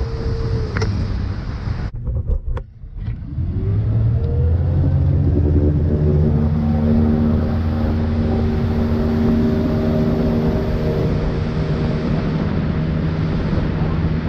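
A motorboat engine drones and revs up.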